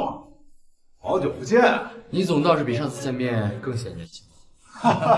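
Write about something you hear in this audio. A young man speaks calmly and politely.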